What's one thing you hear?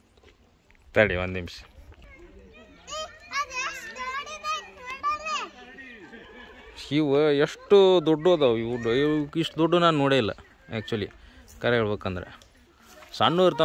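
Young girls talk and call out close by, outdoors.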